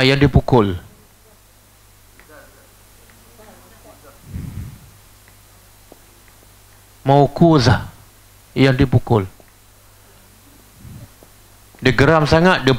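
A middle-aged man speaks in short bursts through a lapel microphone.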